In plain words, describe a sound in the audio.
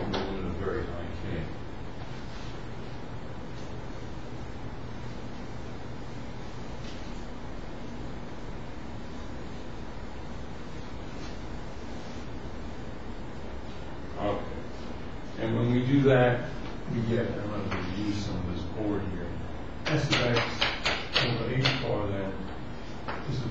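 An elderly man speaks in a lecturing tone.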